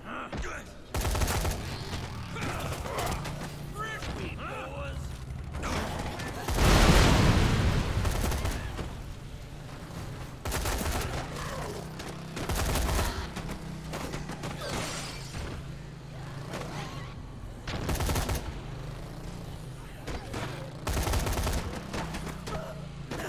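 Bodies thud loudly as a vehicle crashes into them.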